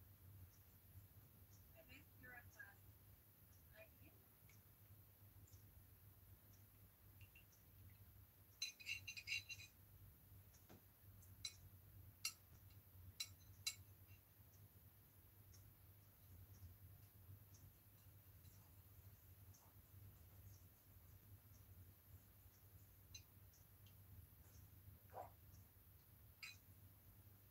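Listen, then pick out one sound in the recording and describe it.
A paintbrush lightly taps and scrapes on a palette.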